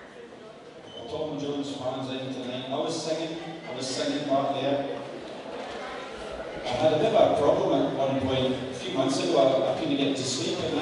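An elderly man speaks through a microphone in a large hall.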